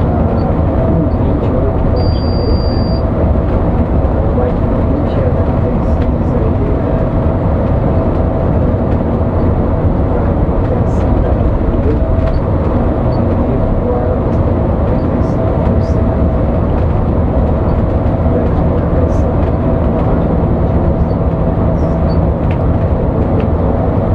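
A bus engine drones steadily from inside the cab.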